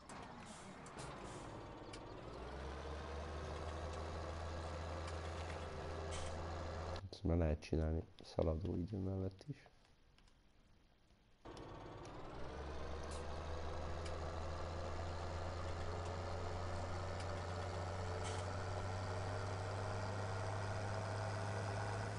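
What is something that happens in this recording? A tractor engine rumbles steadily as it drives along.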